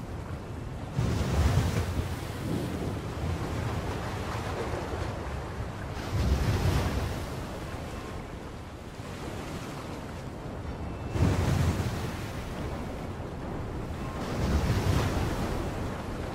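Waves crash and surge in heavy swells.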